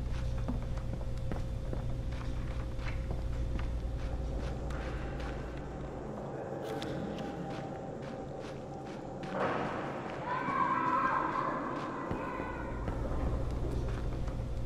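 Footsteps thud on a hard floor at a walking pace.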